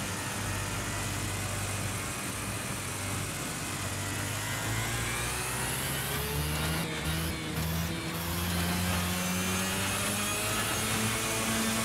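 A kart engine buzzes loudly, its pitch rising and falling as it speeds up and slows down.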